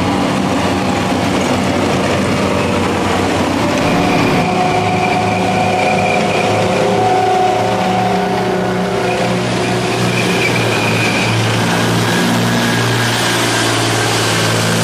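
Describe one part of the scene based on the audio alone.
Metal tracks clank and squeal on the wet road.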